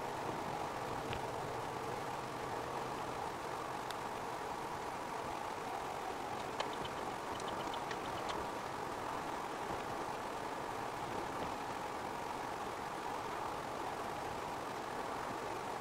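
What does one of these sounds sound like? Tyres roll steadily on asphalt.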